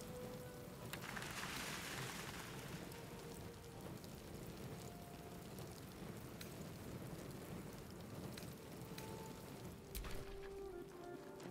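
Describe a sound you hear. Soft menu clicks sound as items are taken one by one.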